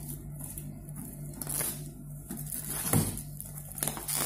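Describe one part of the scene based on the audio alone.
Hands rub and tap against a cardboard box.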